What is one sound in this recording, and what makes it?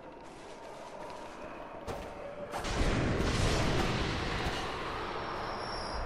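A blade slashes and strikes with heavy impacts.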